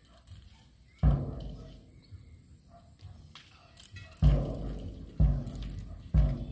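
A bass drum booms loudly outdoors, a few beats at a time.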